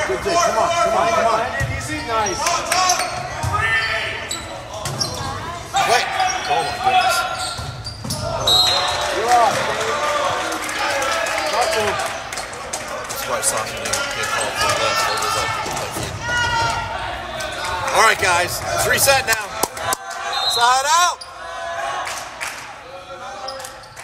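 Players' shoes squeak sharply on a gym floor.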